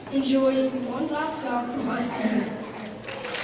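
A young girl speaks into a microphone, heard through a loudspeaker.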